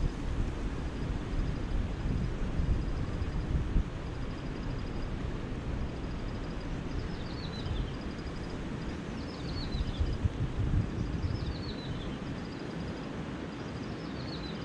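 Wind blows outdoors, rumbling low.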